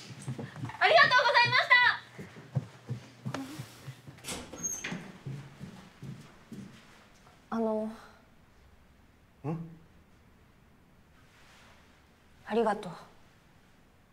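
A young woman speaks calmly nearby.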